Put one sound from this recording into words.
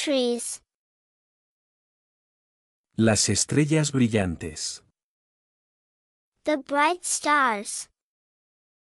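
A young woman speaks brightly and clearly into a close microphone.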